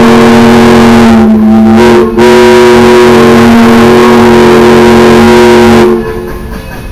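A steam locomotive's whistle blows loudly and long.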